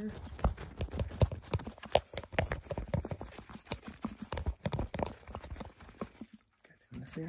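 Plastic tubes rub and crinkle close up.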